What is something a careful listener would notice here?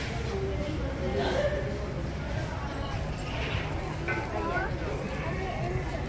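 Men, women and children chatter nearby outdoors.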